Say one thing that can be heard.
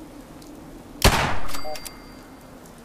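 A gunshot fires and echoes.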